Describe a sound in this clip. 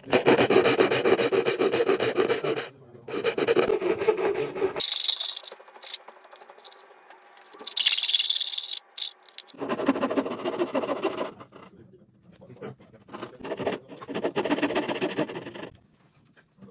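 A Japanese pull saw cuts through hardwood in quick rasping strokes.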